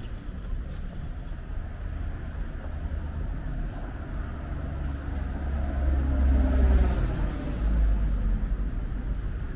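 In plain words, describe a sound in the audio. Footsteps tap on a pavement close by.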